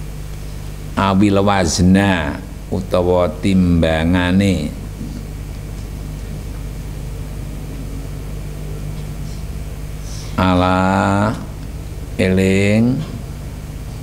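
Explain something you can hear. A group of young people recite aloud together in a chanting voice.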